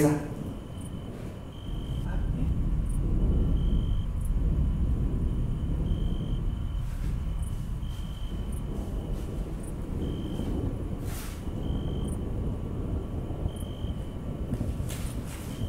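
An elderly man speaks quietly into a phone.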